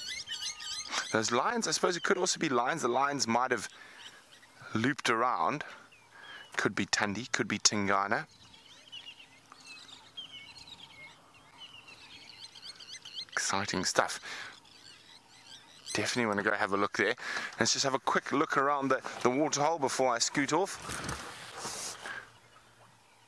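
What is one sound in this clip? A man speaks calmly into a clip-on microphone, close by, outdoors.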